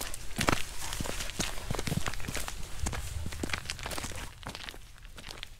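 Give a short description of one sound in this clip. A dog rustles through long grass.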